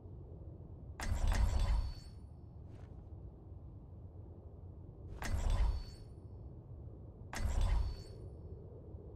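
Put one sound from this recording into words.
A short game sound effect plays each time a teammate picks a character.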